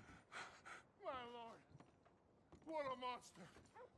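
A man exclaims in shock.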